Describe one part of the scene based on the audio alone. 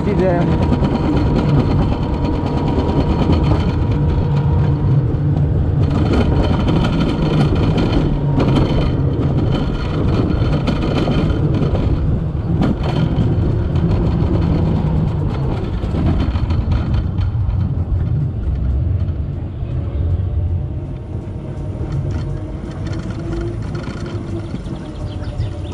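A toboggan rumbles and rattles fast along a metal track.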